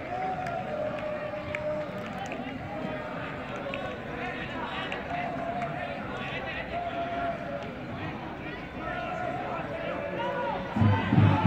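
Players shout and call out to each other outdoors.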